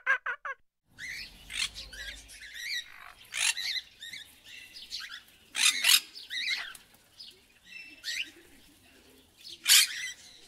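A cockatoo screeches loudly.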